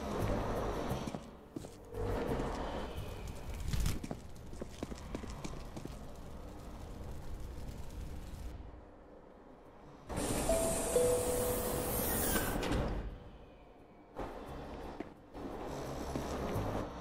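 A subway train rumbles along the tracks.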